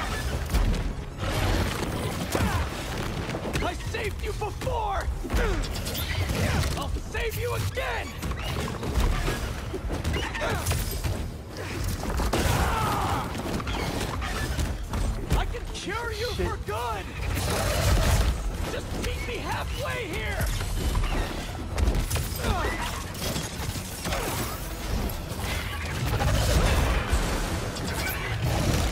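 Heavy punches and blows land with thuds.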